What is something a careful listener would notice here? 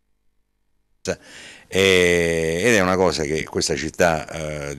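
An older man speaks calmly into microphones close by.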